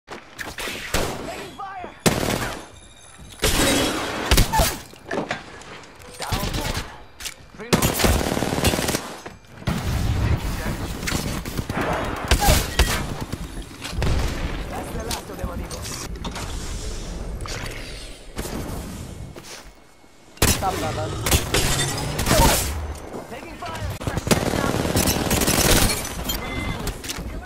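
Rapid gunfire bursts out in short volleys.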